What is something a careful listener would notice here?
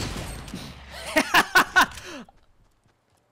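A young man exclaims excitedly close to a microphone.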